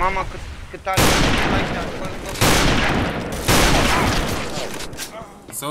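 A rifle fires loud shots that boom and echo.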